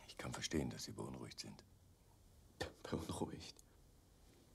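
An elderly man speaks quietly and calmly nearby.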